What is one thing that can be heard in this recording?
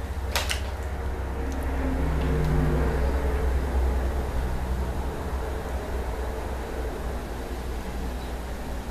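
A woman gulps soda from a plastic bottle.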